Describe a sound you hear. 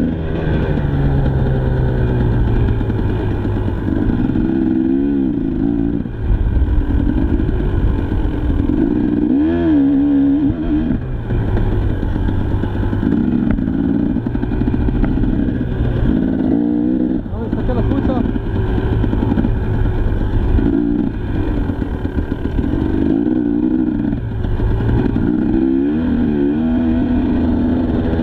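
A dirt bike engine revs up and down loudly, close by.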